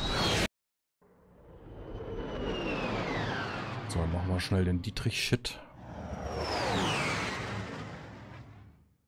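Spaceships whoosh past with sweeping, falling tones.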